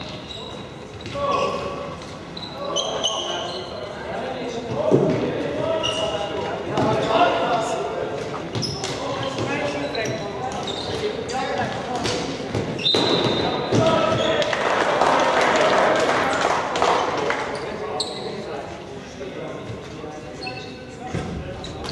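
Young men shout and call to each other across the hall.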